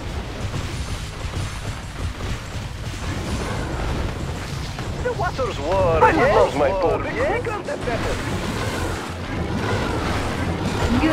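Cannons fire rapidly in a battle at sea.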